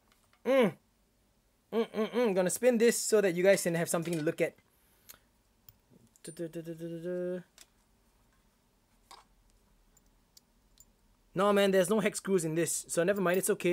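Small metal parts clink together.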